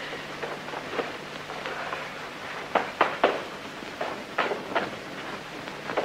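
Footsteps thud.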